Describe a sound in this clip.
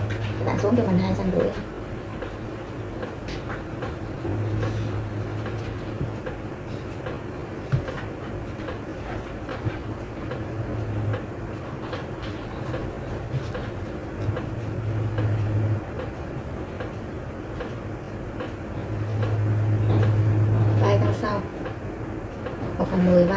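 A plastic ruler taps and slides on paper.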